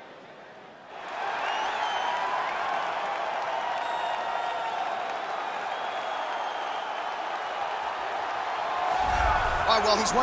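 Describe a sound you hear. A large crowd cheers and murmurs in a big echoing arena.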